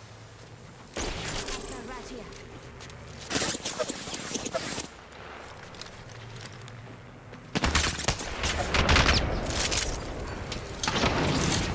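Loud gunshots crack and ring out in bursts.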